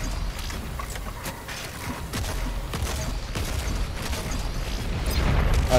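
Rapid gunshots fire again and again.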